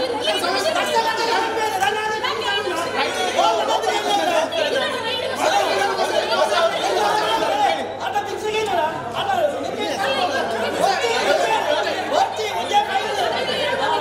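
A man argues heatedly up close.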